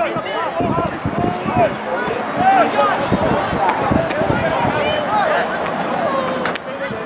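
Young players shout and call to each other outdoors on an open field.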